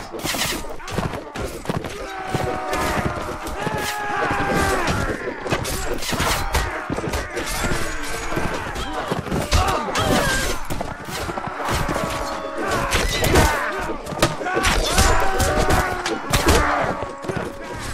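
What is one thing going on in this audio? Horses' hooves thud at a gallop.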